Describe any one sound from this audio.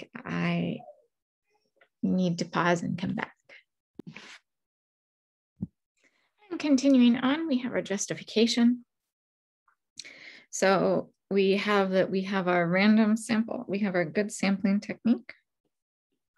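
A woman speaks calmly into a microphone, in short explaining phrases.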